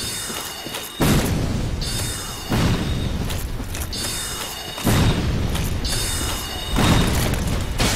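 A magic blast bursts with a loud rushing roar.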